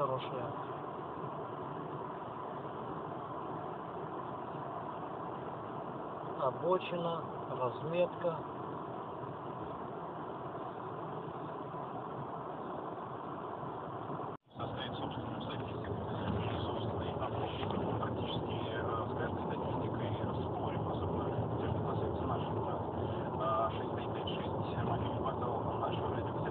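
A car's engine and tyres hum steadily on a highway.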